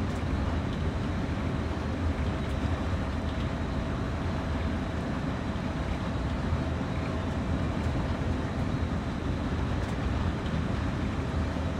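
A locomotive engine rumbles steadily from inside the cab.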